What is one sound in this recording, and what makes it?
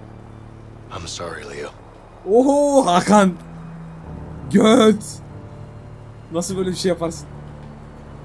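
A young man talks animatedly into a nearby microphone.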